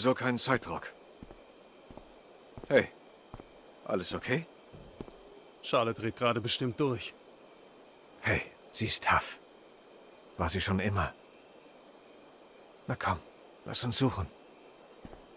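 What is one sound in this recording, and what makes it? A young man speaks briefly and quietly, close to a microphone.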